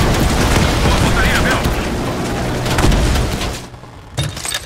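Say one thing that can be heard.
A heavy machine gun fires rapid bursts.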